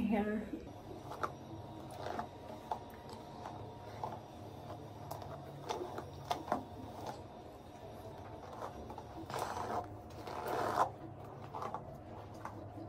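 A brush strokes through hair with soft rustles.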